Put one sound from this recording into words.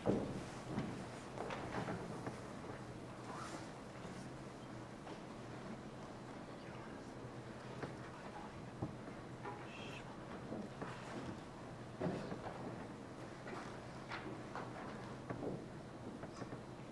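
A choir sings softly in a large hall.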